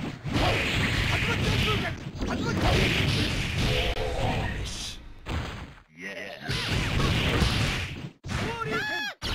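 Energy blasts whoosh and explode loudly.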